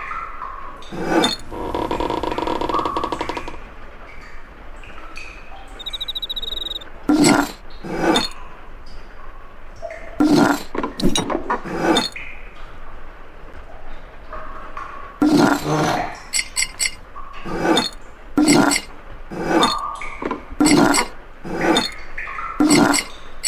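Glass bottles clink and thud as they turn in a rack.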